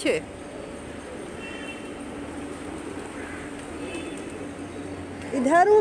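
Pigeons flap their wings as they take off.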